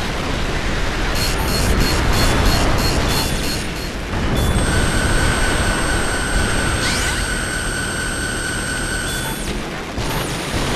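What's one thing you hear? An alarm beeps in a steady repeating pattern.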